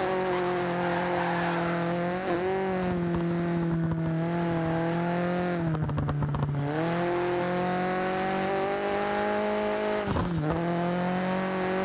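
Tyres skid and scrabble on loose gravel.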